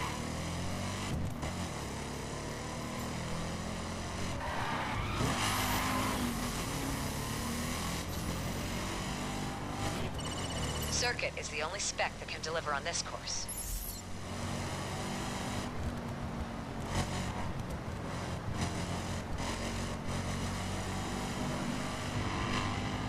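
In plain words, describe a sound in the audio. A car engine roars steadily as it speeds up.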